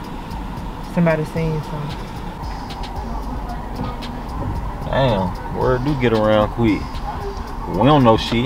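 A young man speaks inside a car.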